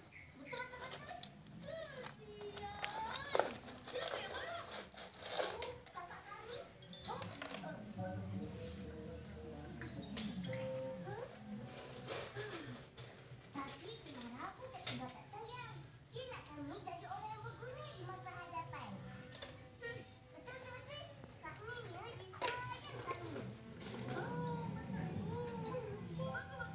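A little girl talks in a small, high voice close by.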